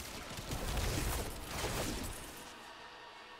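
Lightning crackles and bursts loudly.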